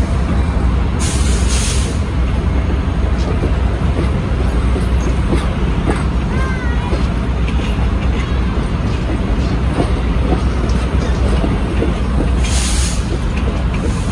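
Steel wheels squeal against the rails.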